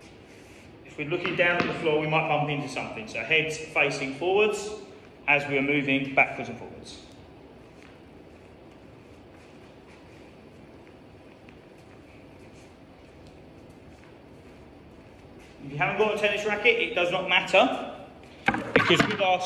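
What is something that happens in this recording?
A young man talks calmly to the listener in a large echoing hall.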